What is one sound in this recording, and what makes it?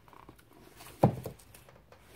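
A hardcover book knocks against a wooden shelf.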